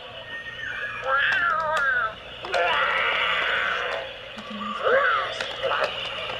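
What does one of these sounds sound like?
A toy dinosaur chirps and squeals in a high electronic voice.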